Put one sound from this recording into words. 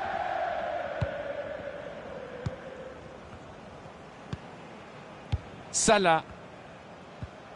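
A football is kicked several times with short dull thuds.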